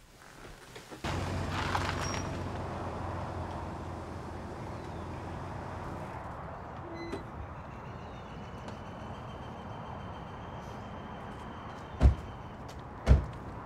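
Outdoor traffic hums steadily in the distance.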